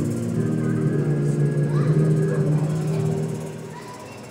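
A congregation sings a hymn together in a large echoing hall.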